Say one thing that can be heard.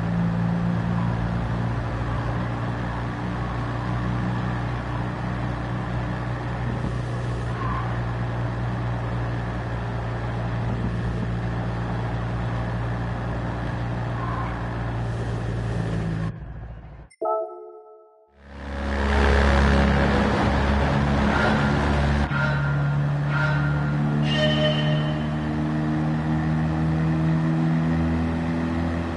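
A small car engine buzzes steadily at high revs.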